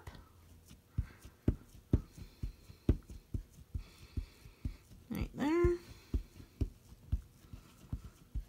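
A plastic block clicks and taps against a hard surface in a steady rhythm.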